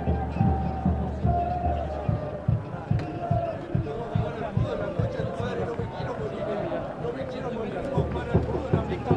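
Several men talk close by, outdoors.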